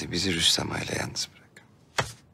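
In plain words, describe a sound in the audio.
A man speaks firmly and sharply, close by.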